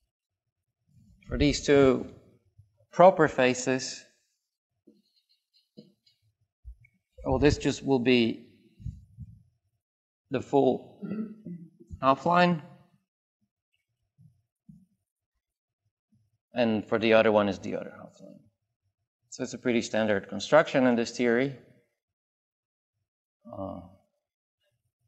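A man lectures calmly in short phrases.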